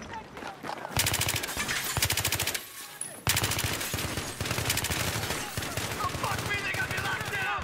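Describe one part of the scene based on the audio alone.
A rifle fires rapid, loud bursts of shots.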